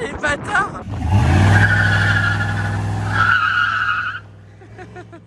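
A pickup truck's engine rumbles as the truck drives off.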